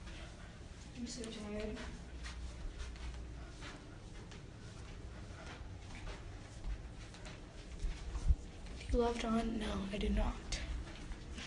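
A young woman talks close to a phone microphone.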